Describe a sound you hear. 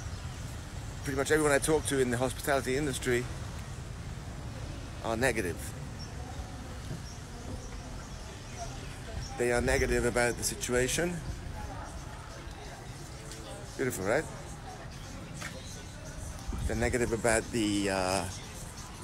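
A middle-aged man talks close to the microphone in short bursts.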